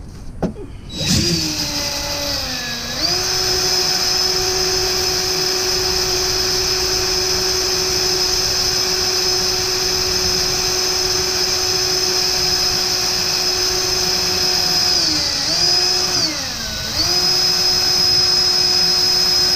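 A cordless drill whirs steadily, briefly slowing down and speeding up again.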